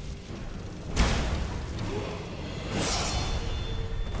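A fiery burst explodes with a roar.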